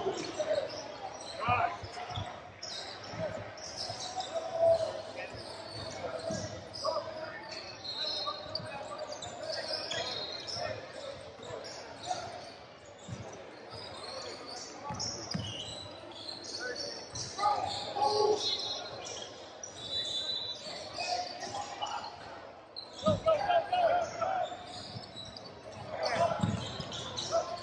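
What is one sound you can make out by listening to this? Spectators chatter in the background.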